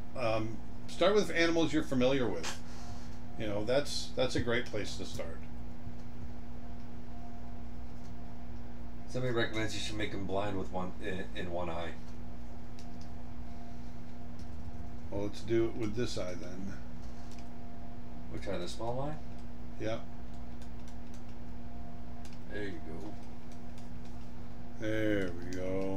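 A middle-aged man talks calmly and close to a microphone, in bursts with pauses.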